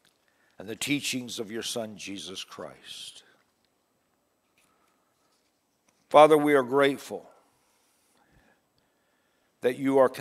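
An older man reads aloud calmly into a microphone, with pauses.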